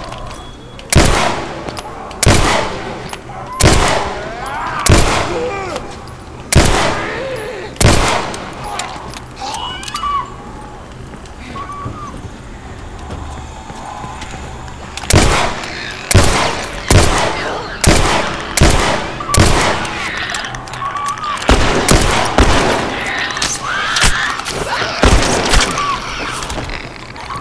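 Gunshots fire loudly in bursts, ringing through an echoing hall.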